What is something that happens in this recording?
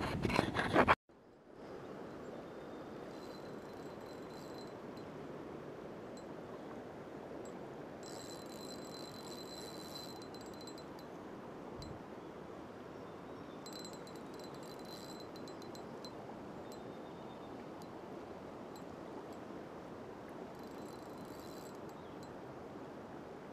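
A river rushes and gurgles close by.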